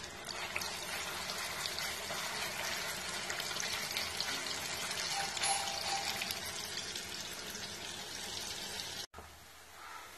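Oil sizzles and crackles loudly in a hot pan.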